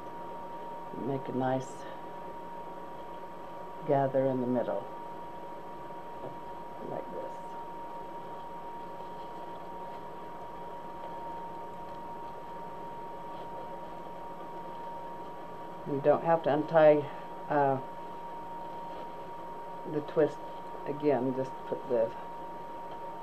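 An elderly woman speaks in short bursts, close to a microphone.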